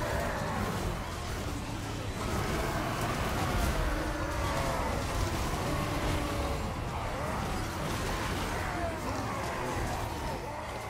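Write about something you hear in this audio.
A large battle rumbles with clashing weapons.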